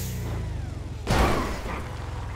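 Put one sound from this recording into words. A car crashes down hard onto the ground with a thud.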